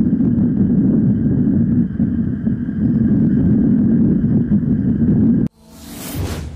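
Wind rushes loudly past a bicycle rider outdoors.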